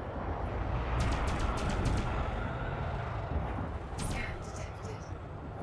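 Laser guns fire in short bursts.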